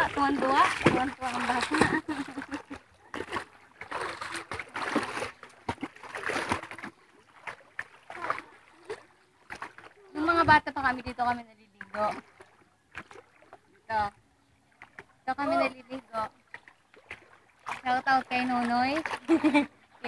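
Feet splash and wade through shallow water.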